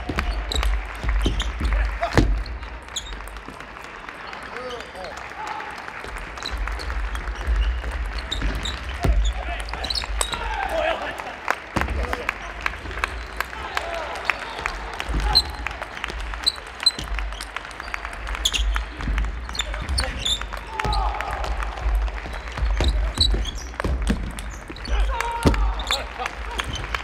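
A table tennis ball clicks back and forth off paddles and table in a large echoing hall.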